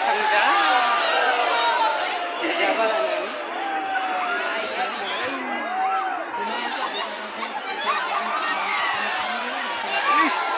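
Water splashes as many people wade through a river.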